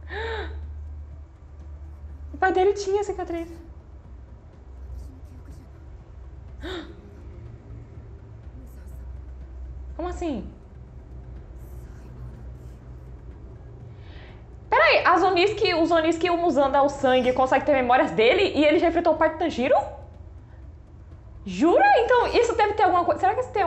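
A young woman talks with animation close to a microphone, in short bursts.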